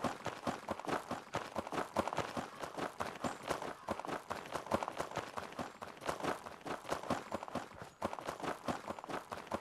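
Quick footsteps crunch on a dry dirt path.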